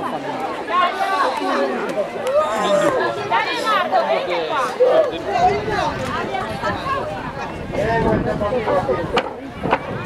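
Children shout and call out excitedly in the distance outdoors.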